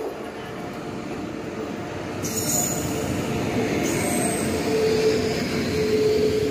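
Another train rolls past on the next track.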